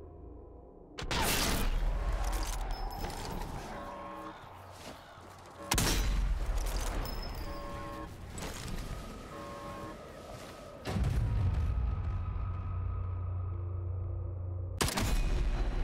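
A rifle fires sharp, loud shots that boom and echo.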